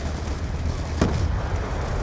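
A wooden crate lid thuds open.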